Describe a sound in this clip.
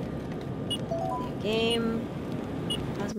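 An old computer beeps.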